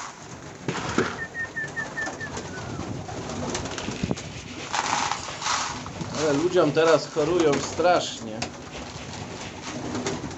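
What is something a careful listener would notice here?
Pigeons flap their wings close by.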